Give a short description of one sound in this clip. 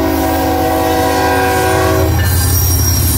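A freight train's horn blares loudly close by.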